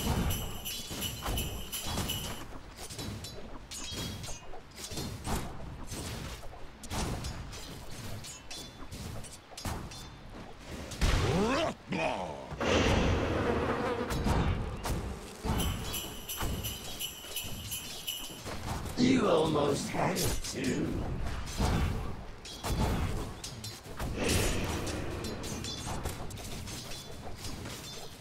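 Fantasy battle sounds clash and crackle, with hits and magic blasts.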